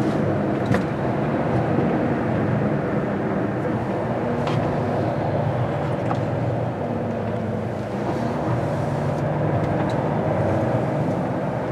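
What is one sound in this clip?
A diesel truck engine rumbles from inside the cab as it rolls slowly.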